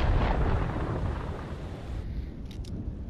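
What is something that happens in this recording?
Stormy sea waves roar and crash.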